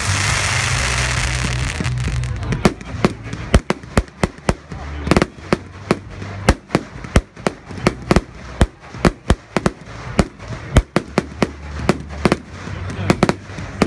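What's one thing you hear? Fireworks hiss and whoosh as they launch.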